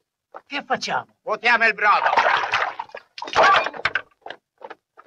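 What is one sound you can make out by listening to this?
Men talk with animation, close by.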